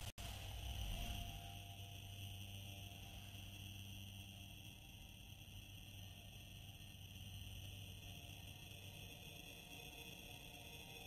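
A spaceship engine roars with a deep, steady rumble.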